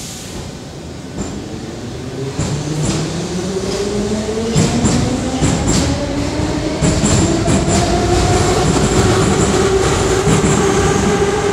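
A subway train pulls away with a rising electric whine and rumbles past loudly, echoing.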